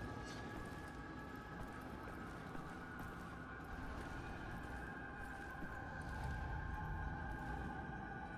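Footsteps thud softly on stone steps.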